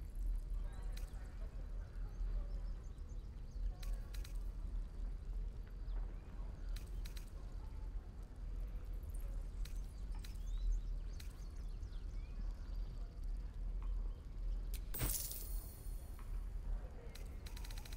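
Soft menu clicks tick now and then as items are picked.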